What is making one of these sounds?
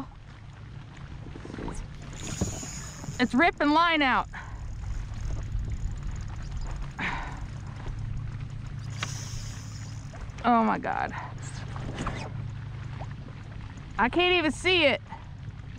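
Small waves lap against the side of a boat.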